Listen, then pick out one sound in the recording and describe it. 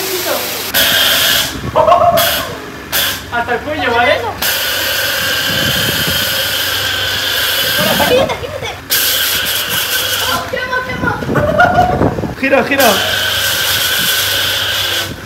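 A pressure washer hose sprays water with a loud steady hiss.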